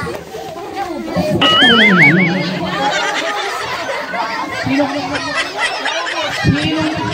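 Children chatter and shout excitedly nearby.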